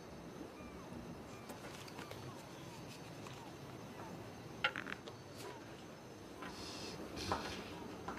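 A plastic card scrapes across a hard tabletop.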